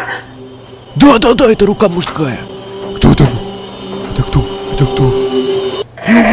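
A young man gasps and exclaims in surprise.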